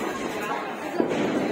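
A firecracker bangs sharply close by.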